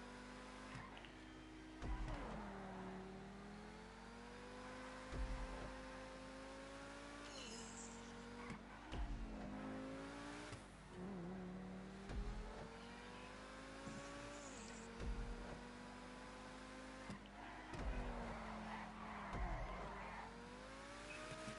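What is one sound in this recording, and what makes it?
A sports car engine revs and whines, shifting up and down through the gears.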